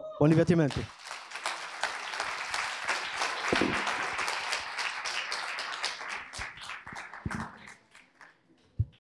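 Keyboard keys click rapidly.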